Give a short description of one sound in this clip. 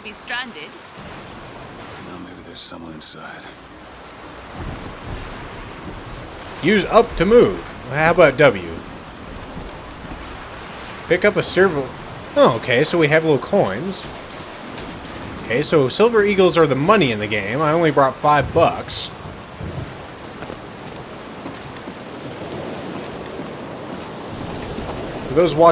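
Rough sea waves surge and crash.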